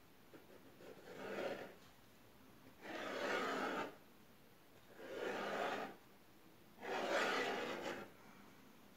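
A knife scrapes through soft pastry in short strokes.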